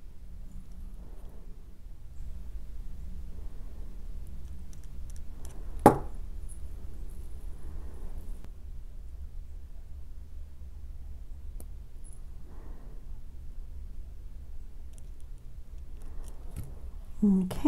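Metal pliers click against a small metal link.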